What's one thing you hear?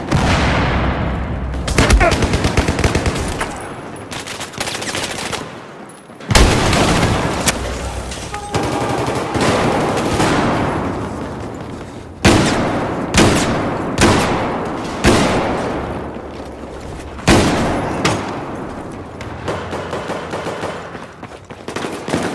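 Gunfire rattles in rapid bursts, echoing loudly.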